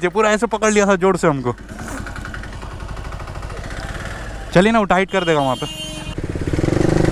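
A motorcycle engine idles and hums steadily.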